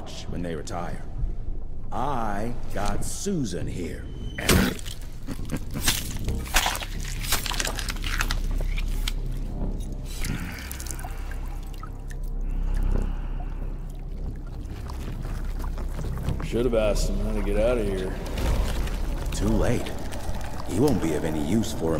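A man speaks in a deep, gruff voice.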